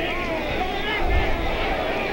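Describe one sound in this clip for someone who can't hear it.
A boxer's gloved punch thuds.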